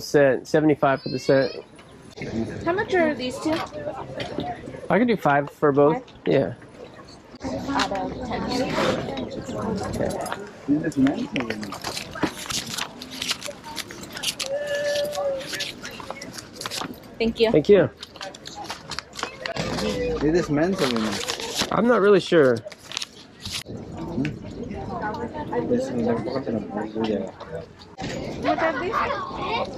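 A man and a woman talk casually close by.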